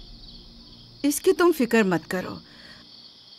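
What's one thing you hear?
An elderly woman speaks calmly, close by.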